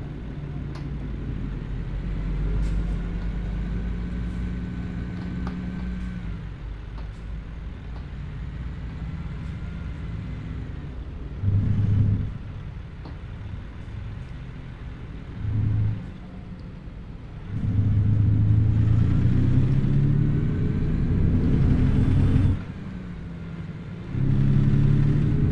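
A truck engine hums low and steady, rising in pitch as it speeds up.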